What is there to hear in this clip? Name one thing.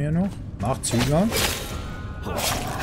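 A sword clashes with a sharp metallic ring.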